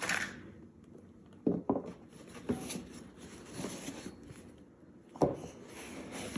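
Foam packing rustles and knocks softly as it is lifted out of a box.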